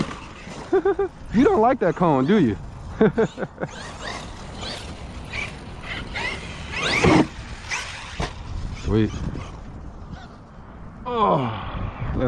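The electric motor of a radio-controlled truck whines, revving up and down.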